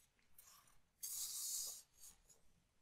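Paper rustles in hands.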